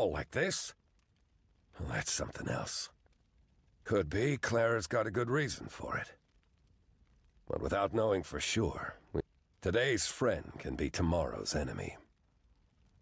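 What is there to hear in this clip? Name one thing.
A middle-aged man speaks calmly in a deep voice, close by.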